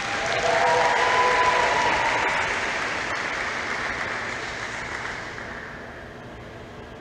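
An audience claps and cheers in a large hall, then the applause dies away.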